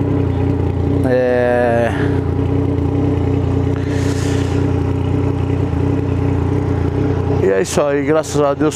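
A motorcycle engine revs up sharply.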